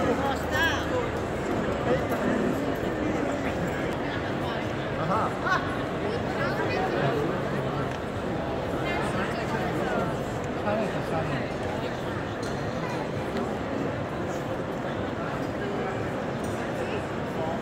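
A large crowd chatters in an echoing arcade.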